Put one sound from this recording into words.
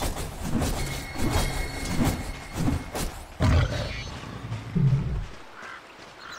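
Magic spells crackle and burst in a video game battle.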